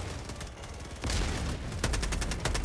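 An explosion booms with a deep rumble.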